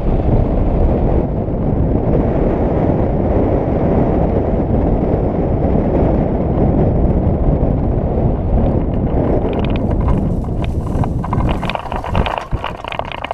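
Wind rushes past a hang glider in flight.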